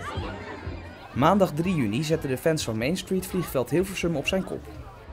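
Women chat close by outdoors.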